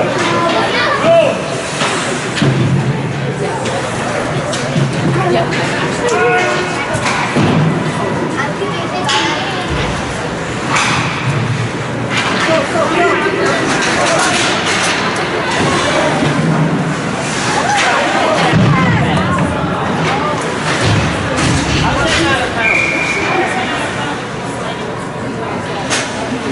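Nearby adults talk with animation.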